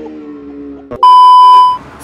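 A steady high beep sounds loudly, then cuts off.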